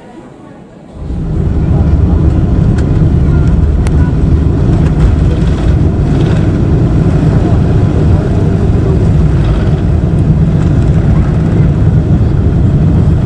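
Jet engines roar loudly as a plane speeds down a runway, heard from inside the cabin.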